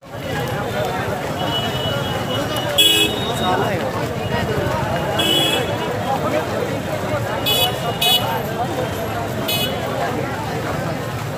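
A large crowd murmurs and chatters loudly outdoors.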